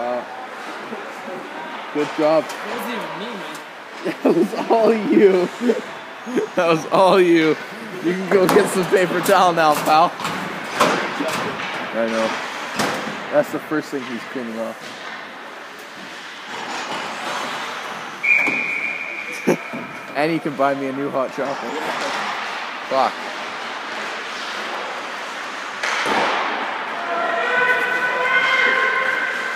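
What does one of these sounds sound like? Skate blades scrape on ice.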